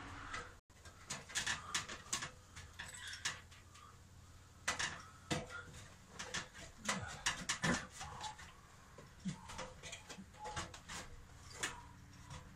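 A metal ladder clanks and rattles as a man climbs on it.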